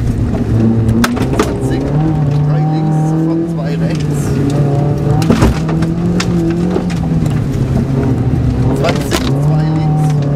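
Gravel rattles and pings against the underside of a car.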